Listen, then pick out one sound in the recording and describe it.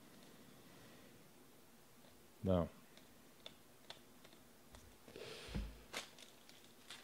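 Trading cards flick and rustle as they are sorted by hand.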